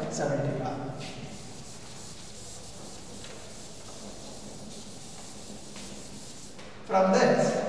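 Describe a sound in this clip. A duster rubs softly across a chalkboard.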